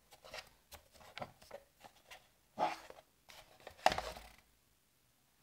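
Plastic toy parts click and rattle as hands handle them.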